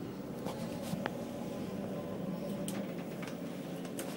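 A finger presses an elevator button with a click.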